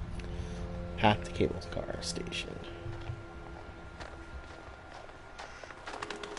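Footsteps crunch slowly on snow.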